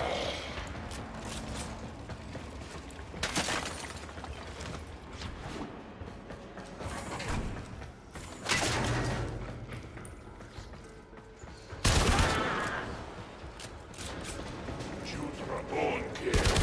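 Footsteps thud quickly on a metal floor.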